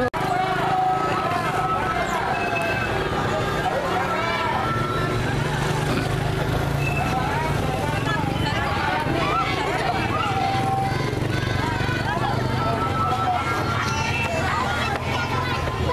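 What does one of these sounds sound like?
An outdoor crowd of adults and children chatters all around.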